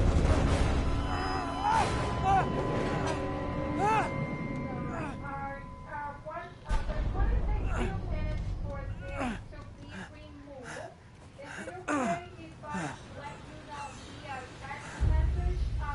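A man grunts and gasps with effort.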